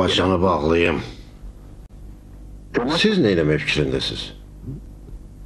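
An elderly man speaks with feeling, close by.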